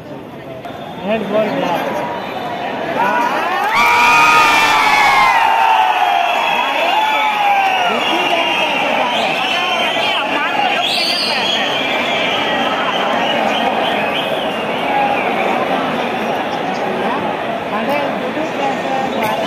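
Several young players shout and call out excitedly across an open outdoor field.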